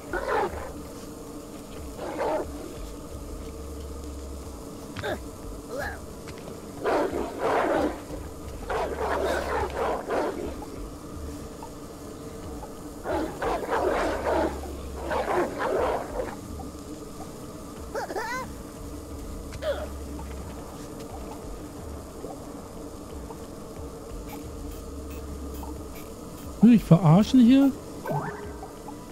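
A middle-aged man talks casually into a close microphone.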